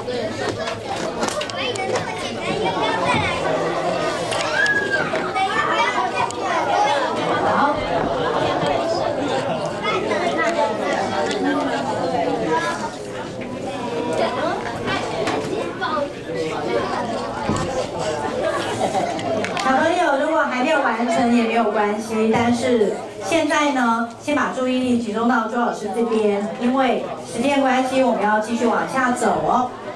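Many children chatter and talk nearby.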